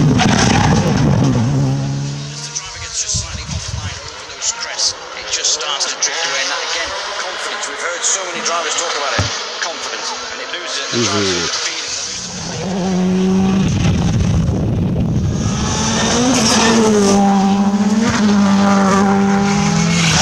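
A rally car engine roars and revs hard.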